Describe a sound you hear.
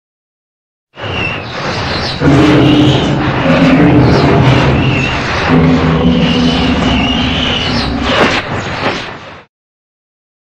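A monster lets out loud, drawn-out roars.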